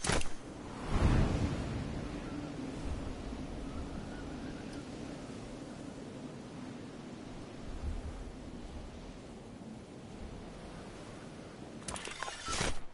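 Wind rushes loudly past a skydiver in free fall.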